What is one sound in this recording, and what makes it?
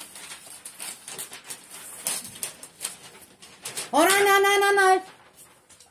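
A girl crinkles and rustles wrapping paper.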